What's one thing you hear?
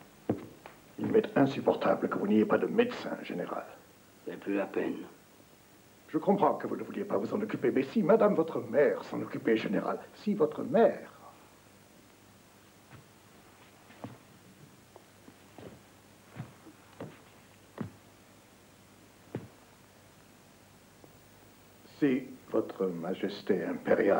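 A middle-aged man speaks firmly and calmly, close by.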